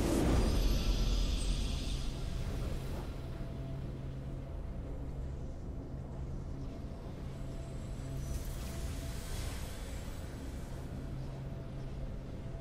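Triumphant fanfare music plays.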